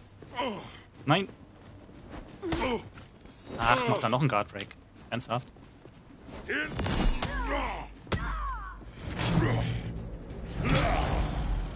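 Steel swords clash and ring.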